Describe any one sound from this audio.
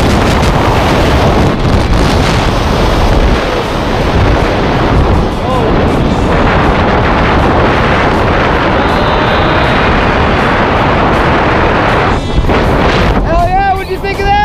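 Strong wind roars loudly against the microphone throughout.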